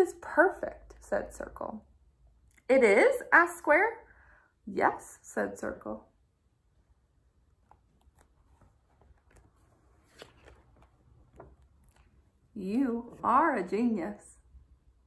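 A young woman reads aloud, close to the microphone.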